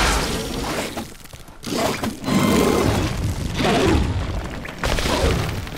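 Fiery bursts whoosh and crackle.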